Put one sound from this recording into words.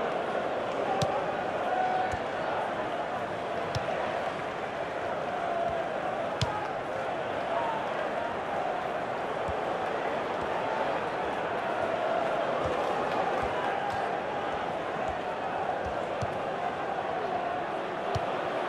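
A football is kicked with dull thuds now and then.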